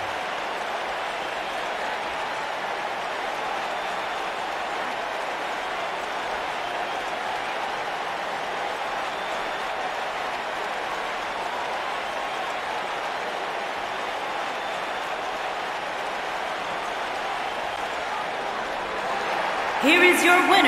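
A large crowd cheers steadily in a big arena.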